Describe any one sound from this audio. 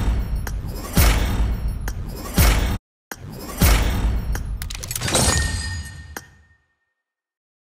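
Loud game reward effects whoosh and boom in bursts.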